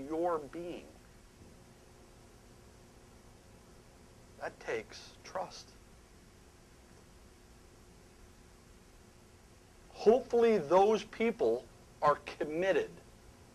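A middle-aged man speaks with animation through a microphone, with long pauses.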